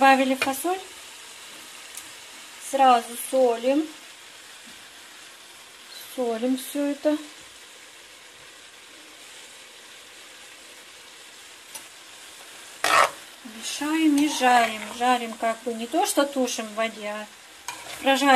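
A metal spoon scrapes and stirs vegetables in a pan.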